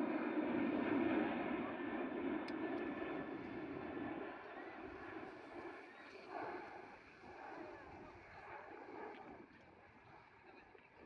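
A crowd of men and women chatters outdoors nearby, growing quieter.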